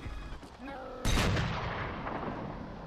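A gun fires a single loud shot nearby.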